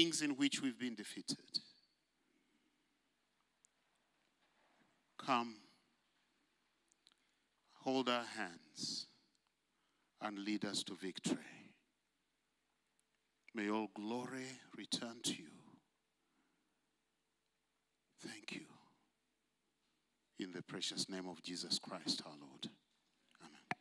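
An elderly man preaches into a microphone in slow, emphatic phrases with long pauses.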